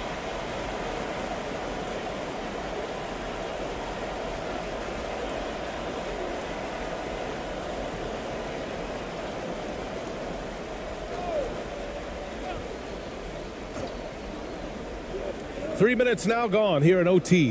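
A large indoor crowd murmurs steadily in an echoing arena.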